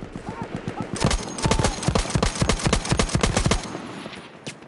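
A heavy machine gun fires rapid bursts close by.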